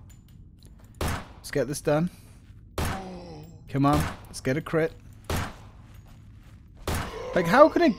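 A pistol fires single loud shots.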